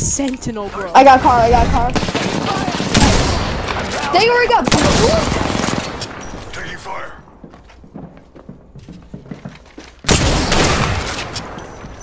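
Gunfire bursts rapidly in loud volleys.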